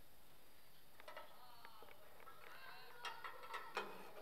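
Metal clinks and rings as a teapot is set on a metal tray.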